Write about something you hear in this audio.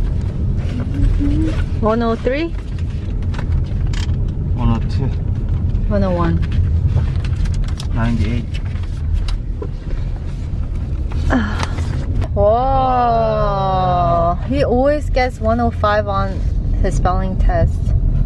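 Paper rustles as a boy handles a folder and sheets.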